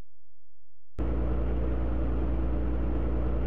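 Racing car engines hum steadily.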